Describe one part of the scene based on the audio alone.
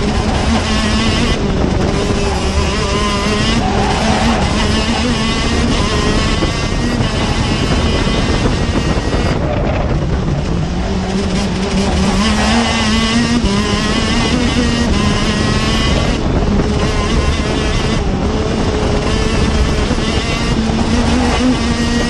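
A kart engine screams up close, its pitch rising and falling as it speeds up and slows down.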